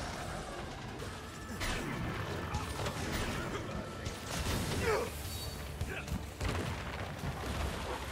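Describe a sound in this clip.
Bursts of magic crackle and explode with each hit.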